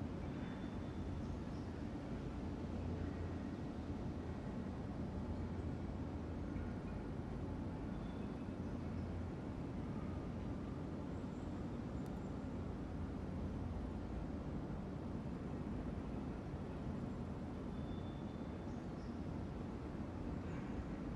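A ceiling fan hums steadily.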